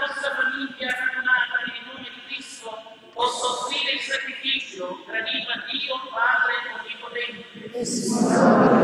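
A man speaks through a microphone, echoing in a large hall.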